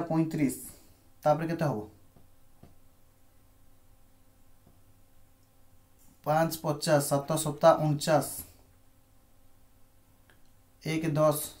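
A man speaks calmly into a microphone, explaining in short bursts.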